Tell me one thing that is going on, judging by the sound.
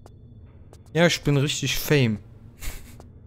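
A man speaks briefly and with animation, close to a microphone.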